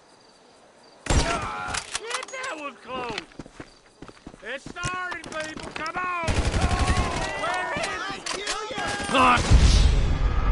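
Gunshots ring out in quick bursts close by.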